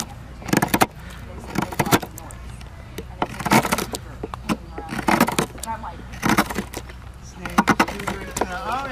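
A hook knife scrapes and shaves wood in repeated short strokes.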